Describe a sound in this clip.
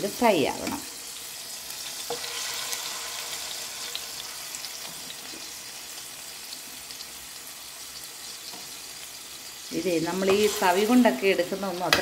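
A metal ladle scrapes against a pan.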